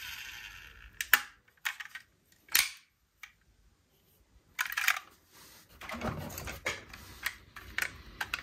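Small plastic toy cars clack and rattle against each other.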